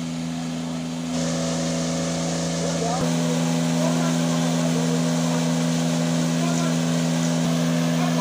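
A motor pump drones steadily.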